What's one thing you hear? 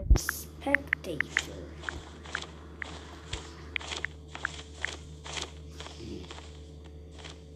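Keyboard taps click rapidly on a phone.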